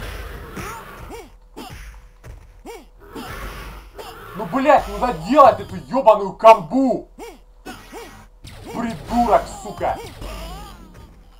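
Blows thud and smack in a fast fight.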